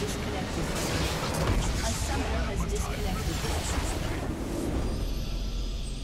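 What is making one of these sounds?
A loud rumbling explosion bursts and crackles.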